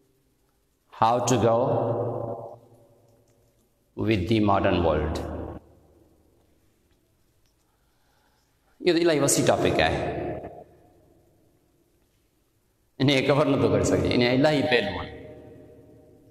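A man speaks with animation through a clip-on microphone in bursts, with pauses between.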